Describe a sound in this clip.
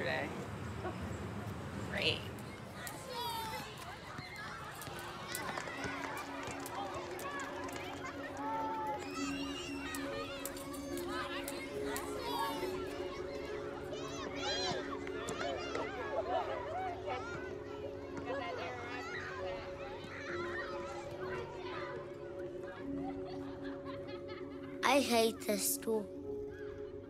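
Children chatter and call out in the distance.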